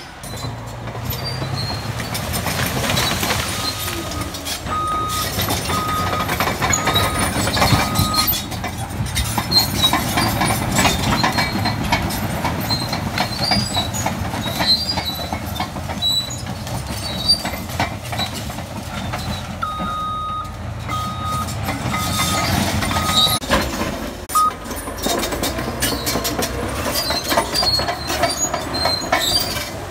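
A bulldozer engine rumbles loudly and steadily.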